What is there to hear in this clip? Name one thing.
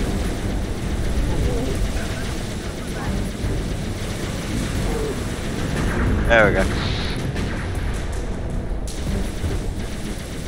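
A hovering vehicle's engine hums and roars steadily.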